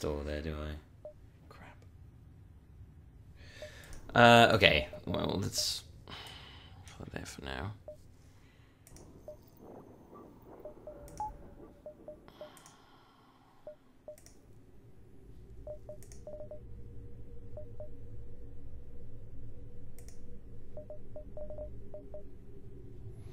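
Short electronic blips sound as menu options are clicked.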